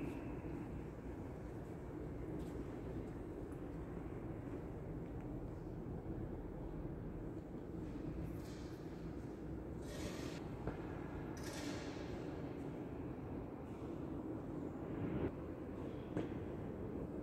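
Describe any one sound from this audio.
A low murmur of distant voices echoes through a large, reverberant hall.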